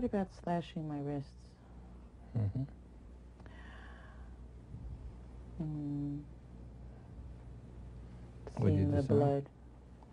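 An older man speaks calmly, in short phrases with pauses.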